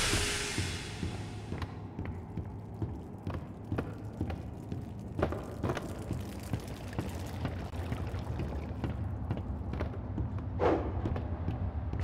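Footsteps thud on wooden floorboards and stairs.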